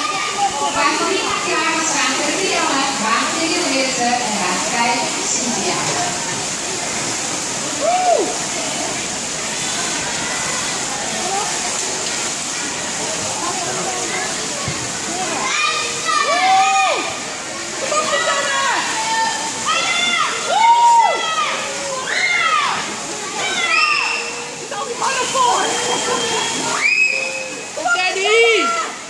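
Swimmers splash through water in a large echoing hall.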